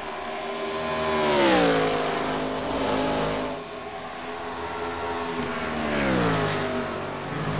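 Race cars whoosh past close by, their engine pitch dropping sharply.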